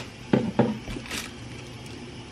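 A spoon scrapes and clinks against a pot.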